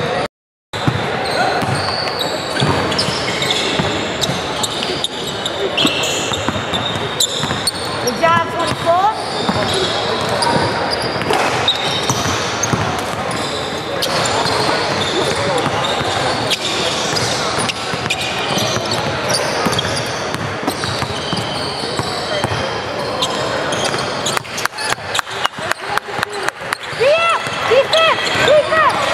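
A crowd of people chatter in a large echoing gym.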